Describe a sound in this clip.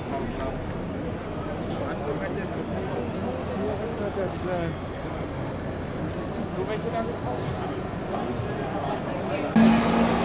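A crowd of adults chatters in the background outdoors.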